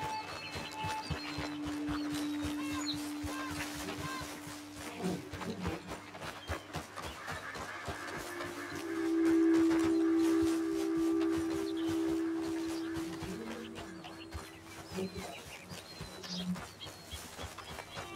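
Footsteps crunch quickly over gravel and grass.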